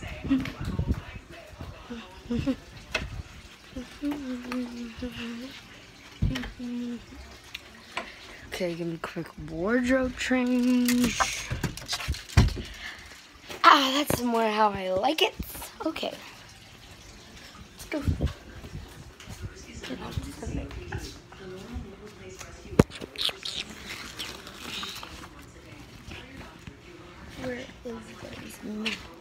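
A young girl talks and sings close to a phone microphone with animation.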